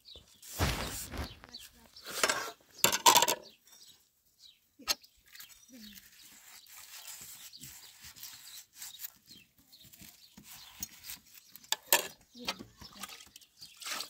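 Dishes clink against a metal pot.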